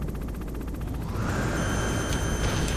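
A helicopter's rotor whirs nearby.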